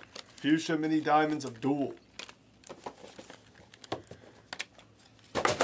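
Trading cards rustle and slide in a man's hands.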